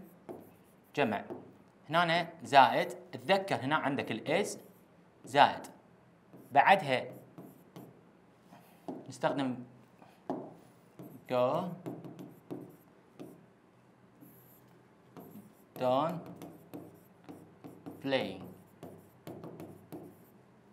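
A young man speaks calmly and explains, close by.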